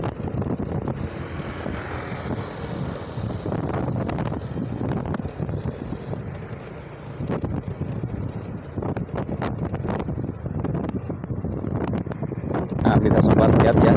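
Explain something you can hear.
A motorbike engine hums in the distance.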